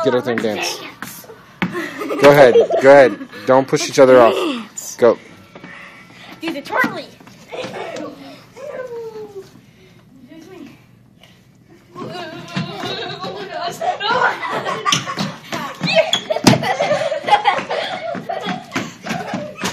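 Children's feet thump and scuff on a wooden floor.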